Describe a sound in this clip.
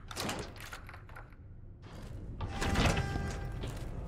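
A key turns in a door lock with a metallic click.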